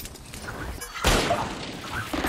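A pistol fires a sharp shot.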